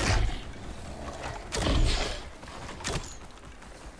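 An arrow thuds into a creature.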